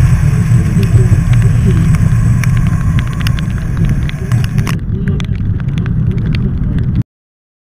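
Raindrops tick against the car.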